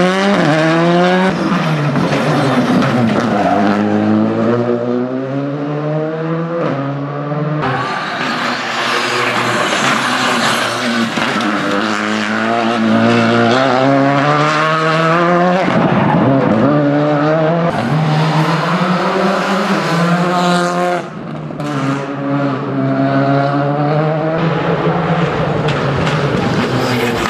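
A rally car engine revs hard and roars as the car speeds past, rising and falling in pitch.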